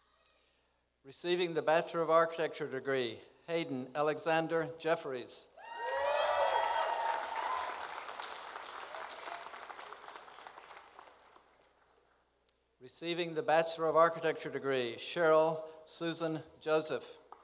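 A man reads out names calmly through a microphone in a large echoing hall.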